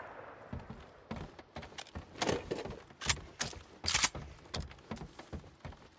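Heavy footsteps thud quickly on wooden boards.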